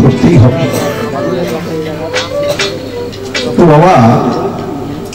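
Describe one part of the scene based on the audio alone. A man sings into a microphone over a loudspeaker.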